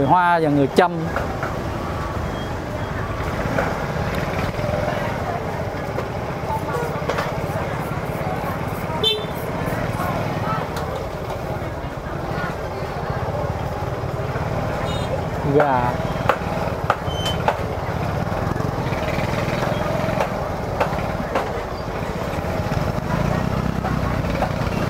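A busy crowd murmurs and chatters all around outdoors.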